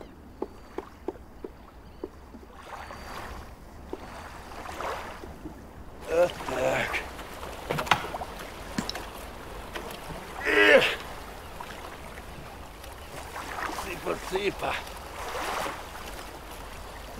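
Small waves lap against rocks.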